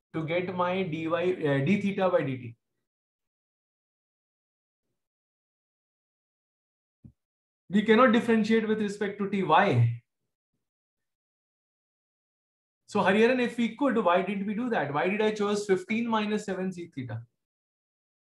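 A man speaks calmly through a microphone, in short bursts with long pauses.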